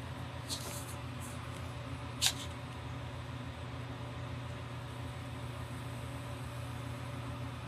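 A pen scratches lightly across paper.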